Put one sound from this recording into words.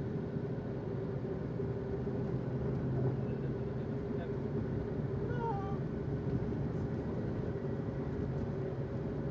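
An engine rumbles steadily, heard from inside a vehicle.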